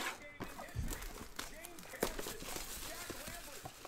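Plastic wrap crinkles as hands peel it off a box.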